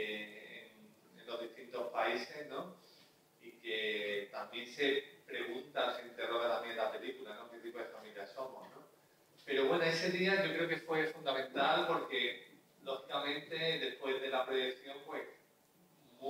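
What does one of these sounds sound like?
A man talks calmly into a microphone, heard over loudspeakers in a large room.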